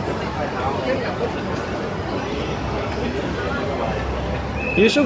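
A crowd of men and women chatters and talks nearby outdoors.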